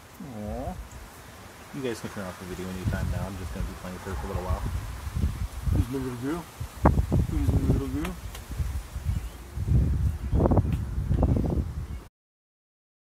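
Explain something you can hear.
A man talks close by in a soft, playful voice.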